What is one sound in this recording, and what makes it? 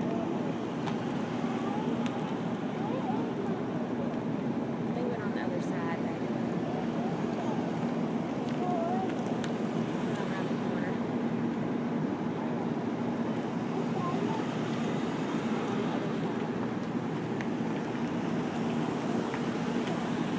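Police cars and SUVs roll slowly past one after another on asphalt.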